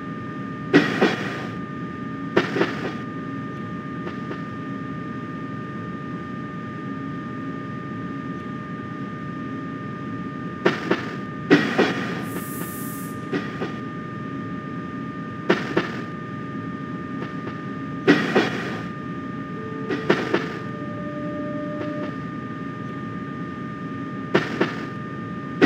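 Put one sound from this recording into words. Train wheels clack sharply over rail joints now and then.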